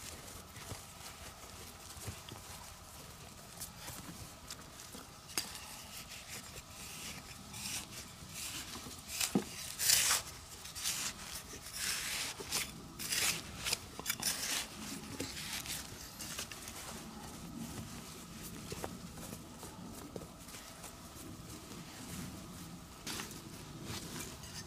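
Fingers scrape and brush through dry soil.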